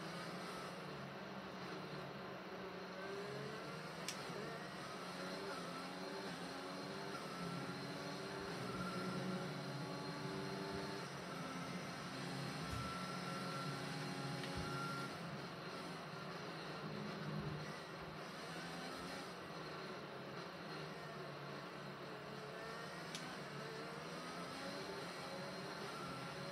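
A racing car engine drones and changes pitch as it speeds up and slows down, heard through a loudspeaker.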